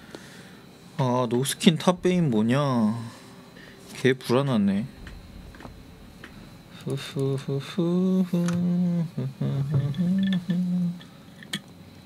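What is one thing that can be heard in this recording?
A young man speaks casually and with animation, close to a microphone.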